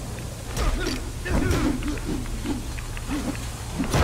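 Electricity crackles and zaps in short bursts.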